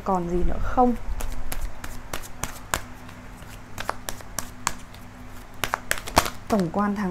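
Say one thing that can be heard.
Playing cards are shuffled with quick, light flicks.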